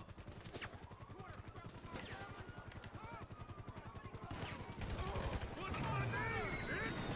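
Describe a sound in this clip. A helicopter's rotor chops rapidly overhead.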